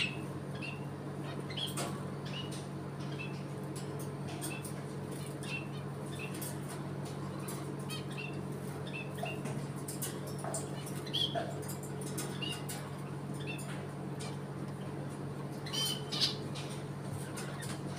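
A parrot's beak and claws click against a wire cage.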